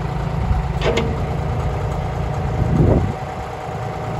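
Hydraulics whine as a digger arm moves.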